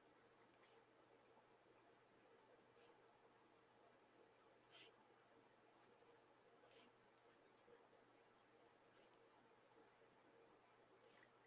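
A marker pen squeaks and scratches softly across paper in short strokes.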